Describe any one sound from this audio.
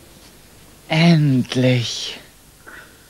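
A young boy sobs.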